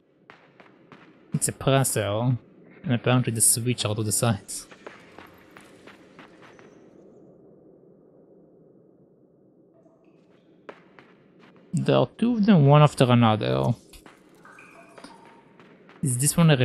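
Small footsteps patter softly on the ground.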